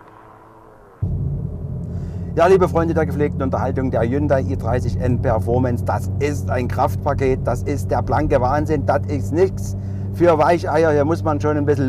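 A car engine hums steadily from inside the moving car.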